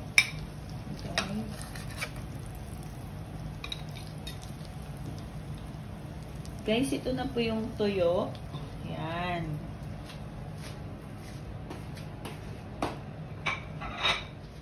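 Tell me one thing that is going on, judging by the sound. Oil sizzles in a frying pan.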